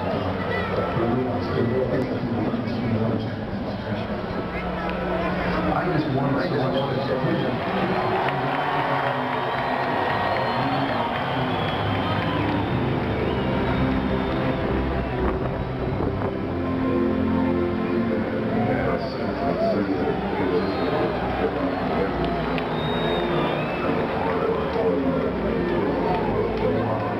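A crowd murmurs and chatters in a large echoing stadium.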